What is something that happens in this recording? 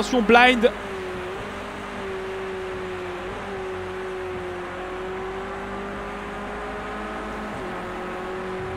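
A car engine hums steadily at high revs.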